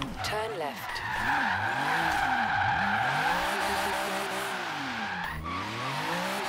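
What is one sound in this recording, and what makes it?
Tyres squeal loudly as a car drifts.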